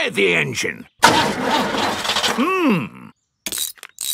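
A metal wrench clanks and rattles against an engine.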